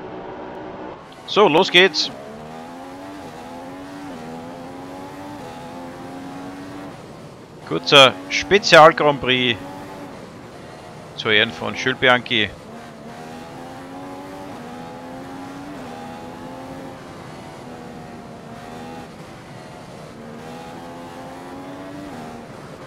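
A racing car engine revs hard, rising in pitch and dropping with each gear change.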